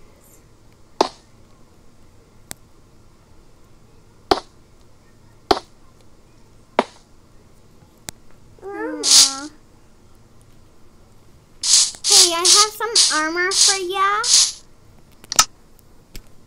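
Short sharp clicks sound now and then as buttons are tapped.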